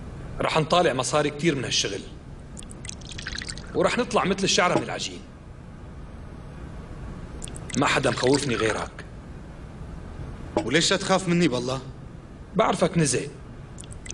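Liquid pours from a jug into a glass.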